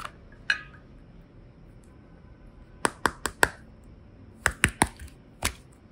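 Plastic toys click and knock against a glass bowl.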